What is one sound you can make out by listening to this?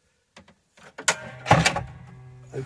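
A table panel clunks and knocks into place.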